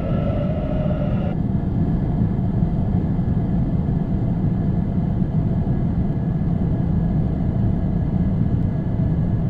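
A subway train rumbles steadily past.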